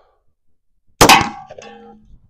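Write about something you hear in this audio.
A pistol fires a single loud shot outdoors.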